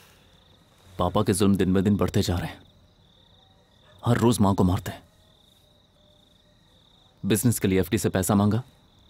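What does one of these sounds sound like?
A young man speaks in a low, tense voice close by.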